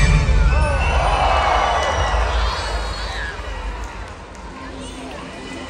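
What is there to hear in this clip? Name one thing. A crowd cheers in a large echoing space.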